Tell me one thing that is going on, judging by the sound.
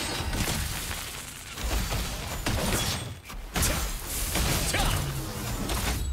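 Weapon strikes and magic blasts hit a monster in quick bursts.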